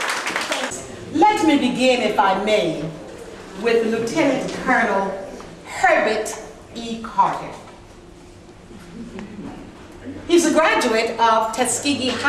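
An elderly woman speaks calmly nearby.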